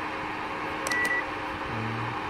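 A multimeter gives a short high beep.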